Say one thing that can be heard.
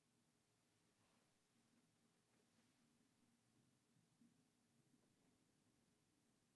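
An older man speaks softly and slowly, close to a microphone.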